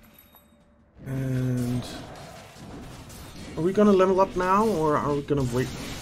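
Weapons clash and spells burst in a busy fantasy battle.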